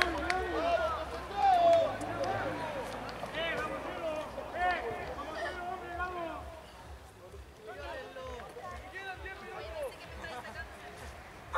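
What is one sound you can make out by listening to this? A crowd of men and women shouts and cheers nearby, outdoors.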